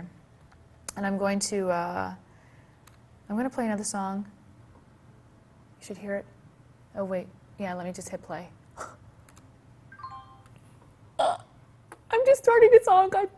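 A young woman speaks calmly and clearly into a nearby microphone, pausing between phrases.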